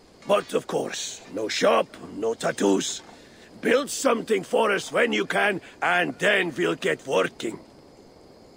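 A middle-aged man speaks calmly and warmly, close by.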